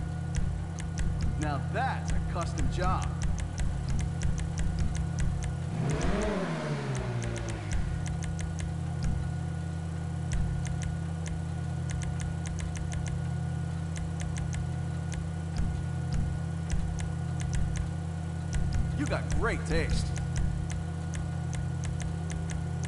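Menu selections tick with quick soft clicks.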